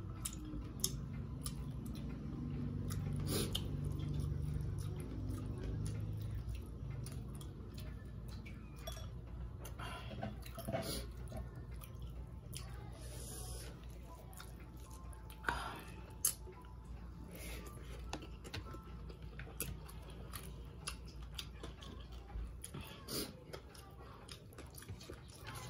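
Fingers squish and pick through soft rice on a plate.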